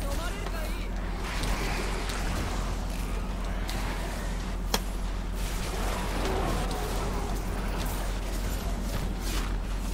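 Icy magic blasts whoosh and crackle through a crowd of monsters.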